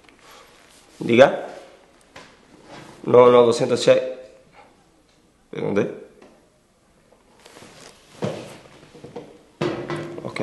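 A young man talks calmly on a phone nearby.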